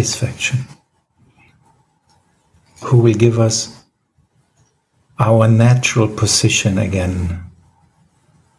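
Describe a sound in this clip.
A middle-aged man speaks calmly over an online call, in short bursts.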